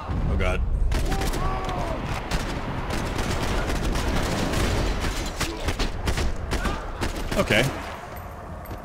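Gunshots fire rapidly and loudly.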